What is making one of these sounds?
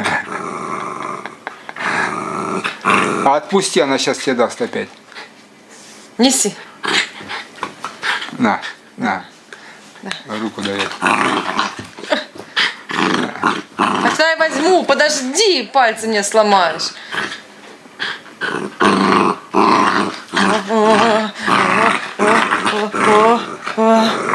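A small dog growls playfully, close by.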